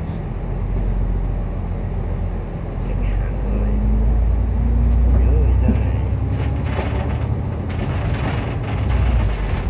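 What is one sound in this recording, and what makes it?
A tram engine rumbles low and steady as the tram rolls along.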